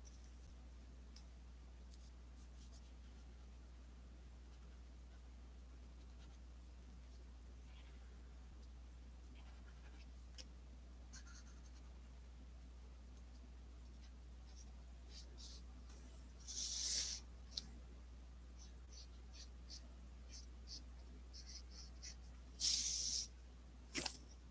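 A marker tip squeaks and scratches softly on paper.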